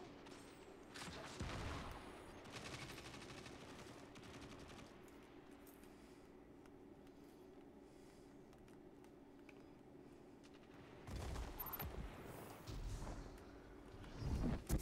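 Guns fire in loud, short bursts.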